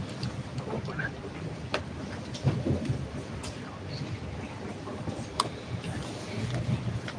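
Many men and women murmur and chatter in a crowded room.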